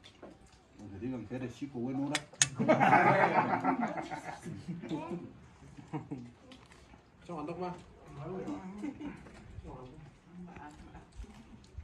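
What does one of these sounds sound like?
Several men talk and laugh together nearby.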